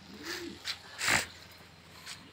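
A pigeon flaps its wings briefly.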